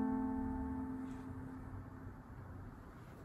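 A piano chord rings out and slowly fades.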